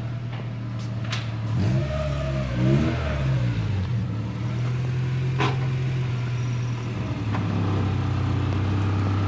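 A car engine idles with a low steady rumble.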